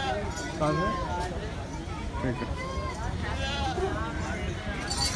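A crowd of adults talks outdoors in the background.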